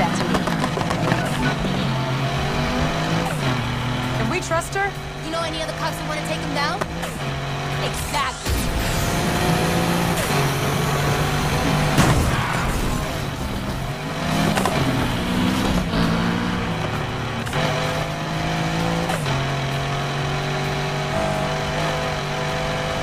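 A car engine roars steadily and revs up and down as the car races.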